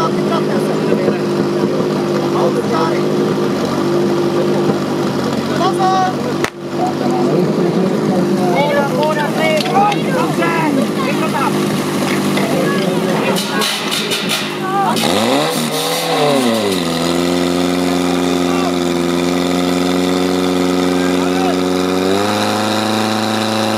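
A petrol engine drones loudly and steadily.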